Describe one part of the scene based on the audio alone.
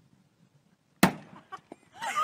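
A sledgehammer bangs against a car once.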